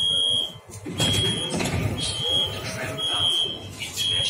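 Train doors slide open.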